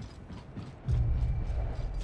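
A heavy thud lands as someone drops to the ground.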